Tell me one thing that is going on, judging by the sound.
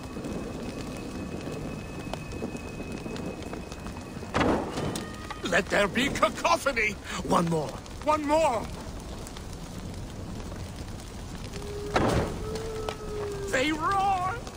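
Fire crackles nearby.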